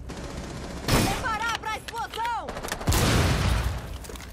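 A rifle fires sharp shots.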